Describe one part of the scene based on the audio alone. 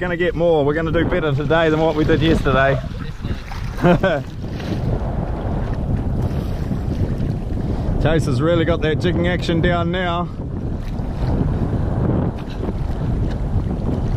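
Wind buffets and rumbles outdoors on open water.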